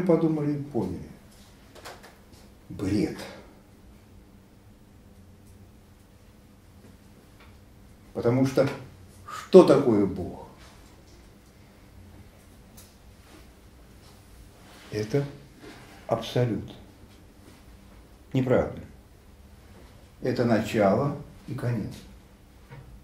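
An elderly man speaks calmly in short bursts with long pauses.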